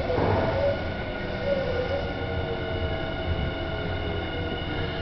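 A train rumbles steadily along its track, heard from inside a carriage.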